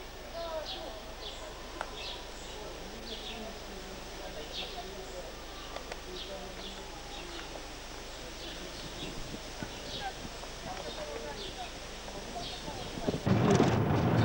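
Birds chirp outdoors.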